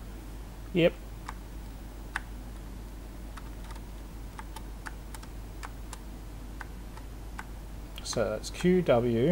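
A man speaks briefly and casually, close to a microphone.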